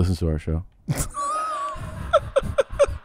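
A man laughs loudly into a microphone.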